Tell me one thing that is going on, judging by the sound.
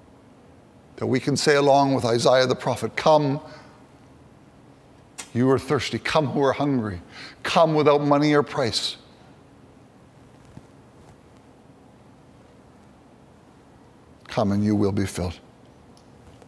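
A middle-aged man speaks calmly into a microphone, in bursts with long pauses, in a slightly echoing room.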